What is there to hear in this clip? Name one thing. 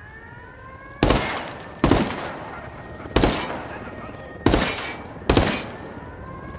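A rifle fires single loud shots that echo off outdoors.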